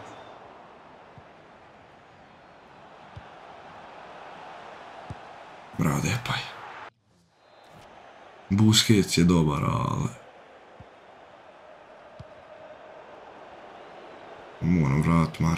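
A crowd in a stadium murmurs and cheers steadily.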